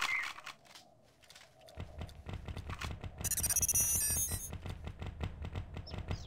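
A gun clicks as it is swapped for another.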